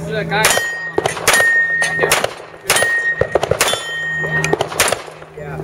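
Bullets clang against steel targets.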